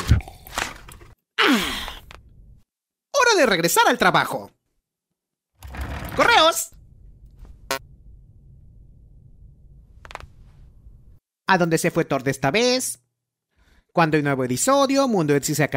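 A young man speaks with animation, close to the microphone.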